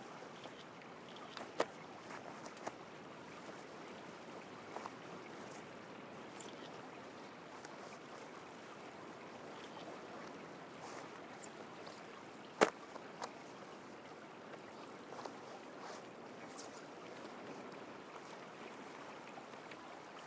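A wooden staff whooshes through the air in quick swings.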